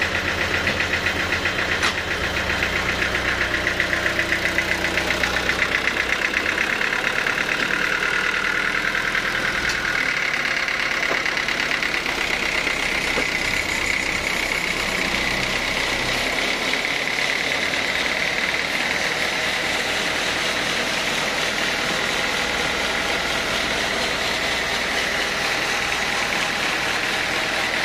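A diesel engine runs loudly with a steady rumble.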